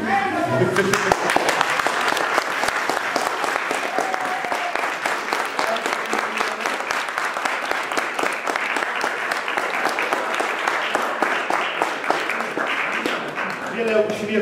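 A group of people clap their hands steadily.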